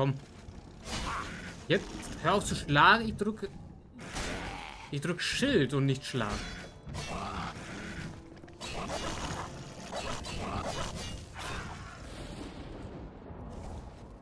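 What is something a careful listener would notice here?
A sword clangs against a creature in quick blows.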